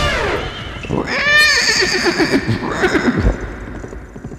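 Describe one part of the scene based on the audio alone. A horse neighs loudly.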